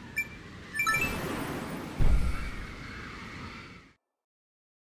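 A rushing whoosh sweeps past.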